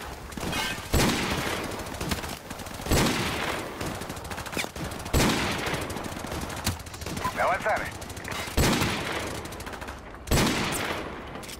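Gunshots ring out loudly, one at a time, with a sharp echo.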